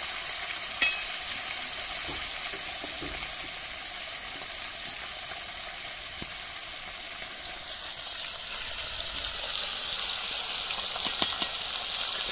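A metal spatula clinks against a metal pan.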